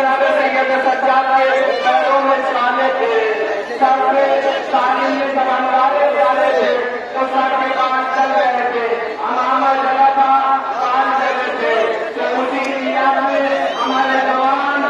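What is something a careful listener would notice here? A crowd of men chants loudly in unison, outdoors.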